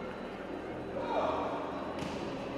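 A fencer lets out a loud, sharp shout in an echoing hall.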